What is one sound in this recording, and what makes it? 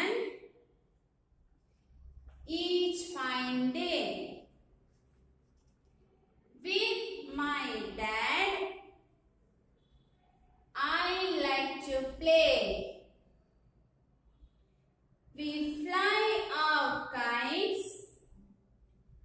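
A young woman reads out lines slowly and clearly, close by, with pauses between them.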